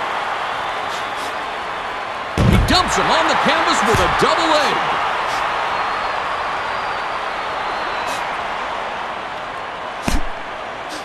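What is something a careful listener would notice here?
A large crowd cheers and roars loudly in an arena.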